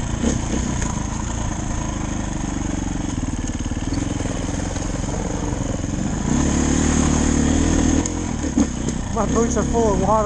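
Tyres crunch over a dirt trail.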